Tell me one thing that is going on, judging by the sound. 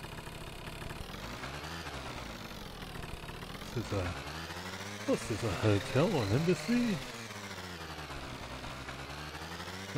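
A scooter engine hums steadily and rises in pitch as it speeds up.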